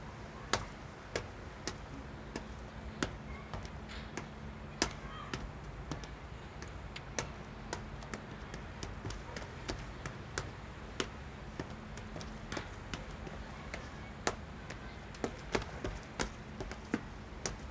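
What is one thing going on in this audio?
Footsteps tap sharply on stone steps outdoors.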